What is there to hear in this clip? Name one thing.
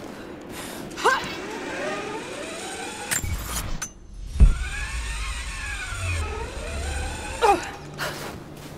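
A pulley whirs down a taut line.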